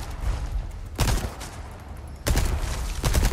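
A gunshot bangs.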